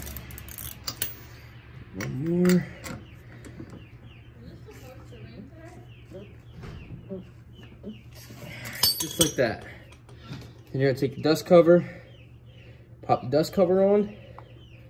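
Metal parts clink together.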